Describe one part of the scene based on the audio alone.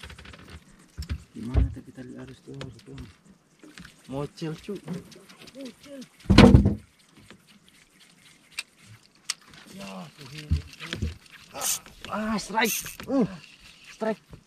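Men talk with animation close by.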